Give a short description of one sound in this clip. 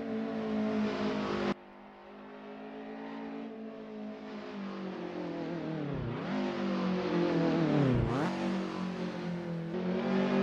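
A car engine revs hard, its pitch rising and dipping sharply as gears shift.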